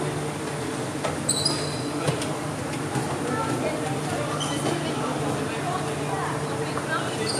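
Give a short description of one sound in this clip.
Shuttlecocks are struck with sharp taps of rackets.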